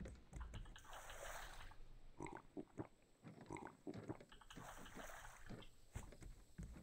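Water splashes as a cup is filled.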